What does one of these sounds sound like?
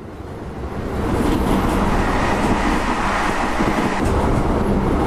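A second train rushes past in the opposite direction.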